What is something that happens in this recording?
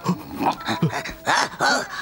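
A man gasps in fright.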